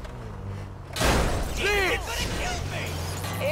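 A car crashes into a pole with a loud bang.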